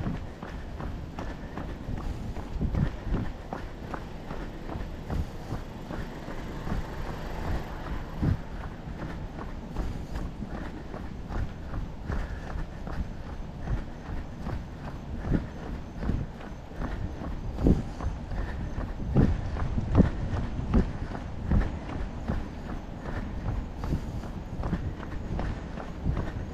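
Footsteps tap steadily on a concrete path.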